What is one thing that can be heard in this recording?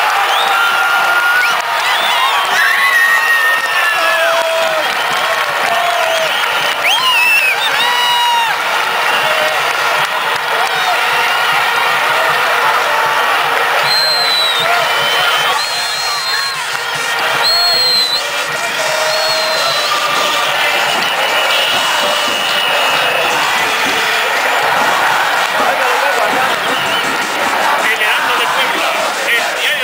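A large crowd of fans sings and chants loudly in an open stadium.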